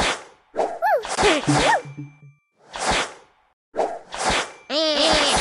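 Playful game chimes slide up and down in pitch.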